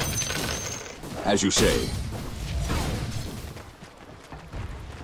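Game combat sounds clash and whoosh as fighters trade spells and blows.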